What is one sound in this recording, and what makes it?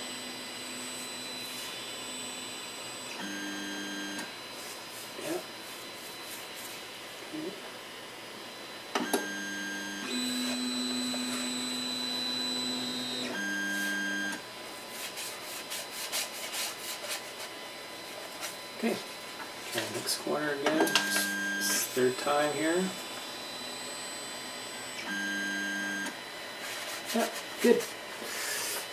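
A printer's motors hum in steady, shifting pitched tones as the print bed moves back and forth.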